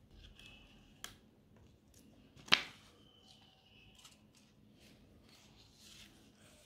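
A paper card rustles and crinkles in someone's hands.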